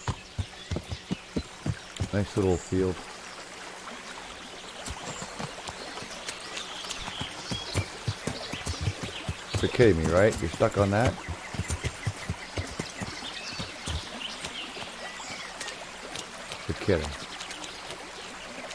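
A horse's hooves clop steadily on the ground.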